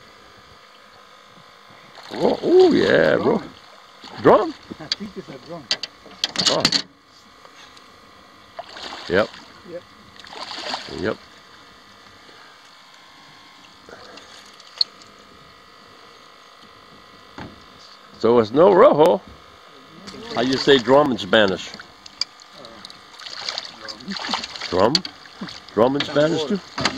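Water splashes and swirls as a fish struggles at the surface.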